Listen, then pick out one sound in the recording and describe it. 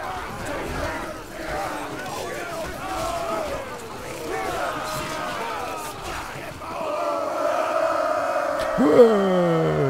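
Weapons clash and clang against shields.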